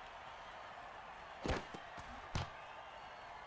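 Football players crash together with heavy thuds.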